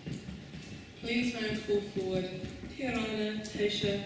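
An older woman speaks calmly into a microphone in an echoing hall.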